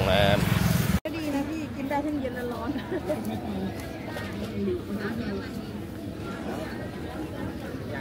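A crowd murmurs and chatters in the background at an outdoor market.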